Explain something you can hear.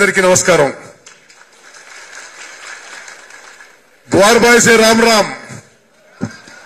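A man speaks forcefully into a microphone, his voice carried over loudspeakers.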